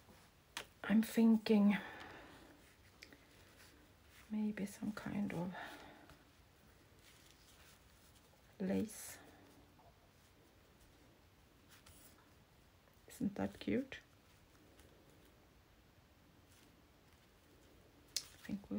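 Hands rustle and press paper softly.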